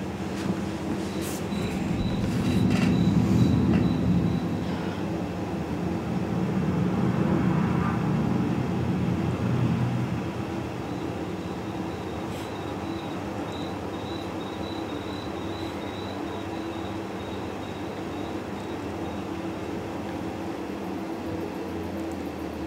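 A tractor engine hums steadily as it drives along a road.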